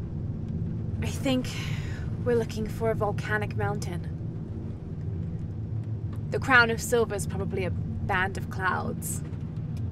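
A young woman speaks calmly and close.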